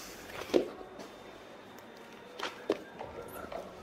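Hands thump softly on a wooden floor.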